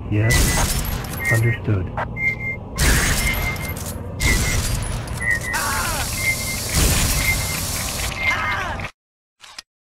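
Gunfire and explosions crackle in a game battle.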